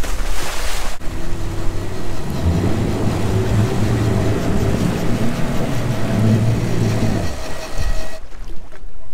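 A boat engine rumbles loudly as the hull rushes through the water.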